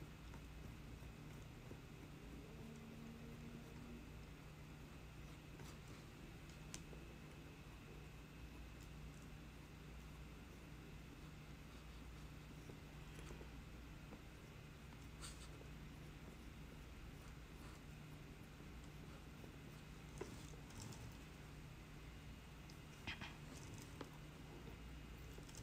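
A metal tool scrapes softly against dry clay.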